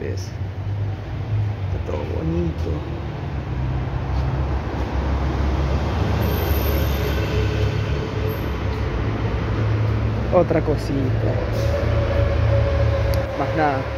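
A bus engine rumbles low and steady as the bus moves along.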